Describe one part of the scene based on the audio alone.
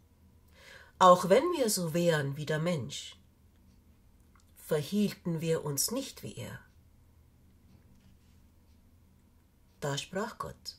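A middle-aged woman reads aloud calmly and close by, with pauses.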